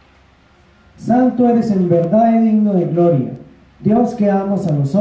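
A young man chants slowly into a microphone, heard close and loud.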